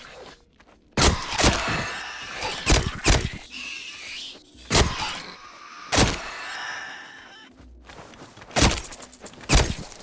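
A metal crowbar swings and strikes a creature with sharp, heavy smacks.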